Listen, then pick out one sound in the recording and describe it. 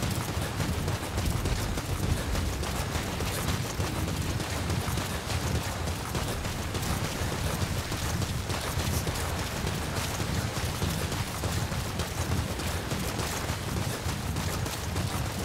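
Footsteps crunch over rocky ground.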